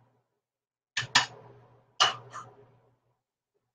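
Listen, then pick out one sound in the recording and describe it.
Metal utensils clatter sharply against a pan.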